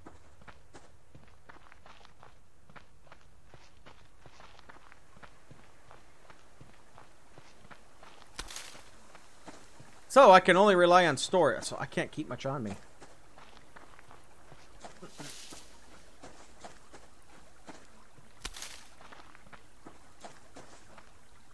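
Footsteps crunch softly over grass and dirt.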